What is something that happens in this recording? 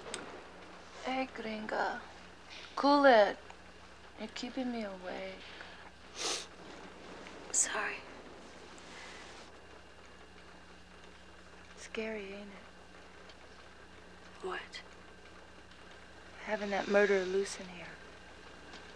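A woman sobs and whimpers close by.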